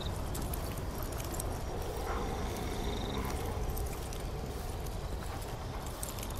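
Footsteps patter softly on stone.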